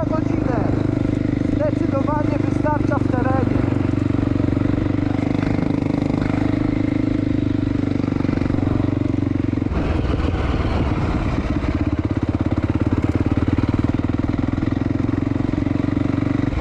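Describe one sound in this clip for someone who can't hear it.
A quad bike engine drones steadily up close.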